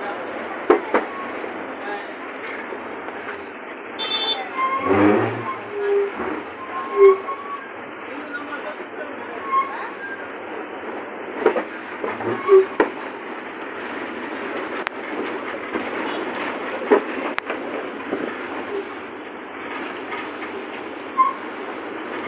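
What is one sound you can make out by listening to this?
A bus rattles and clunks over bumps.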